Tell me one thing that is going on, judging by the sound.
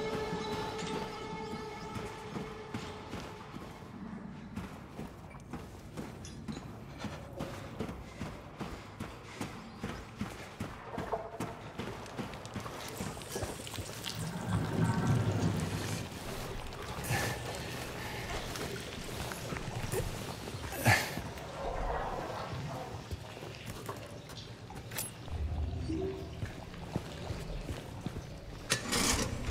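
Footsteps thud on a metal grate and hard floor at a steady pace.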